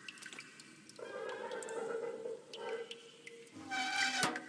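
A metal valve wheel creaks and squeals as it turns.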